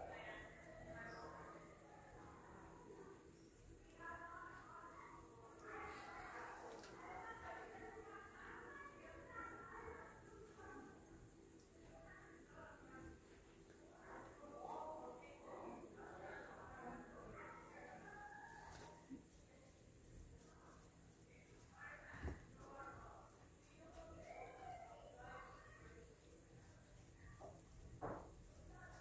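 Hands squeeze and smooth soft clay close by.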